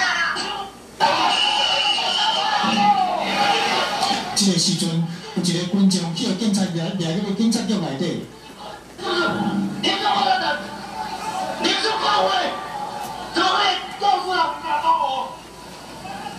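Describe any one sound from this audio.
Men shout angrily at close range.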